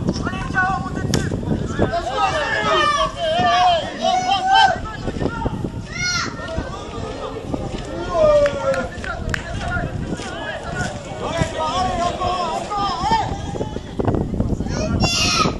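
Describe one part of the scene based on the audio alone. Young women players shout to each other across an open outdoor pitch.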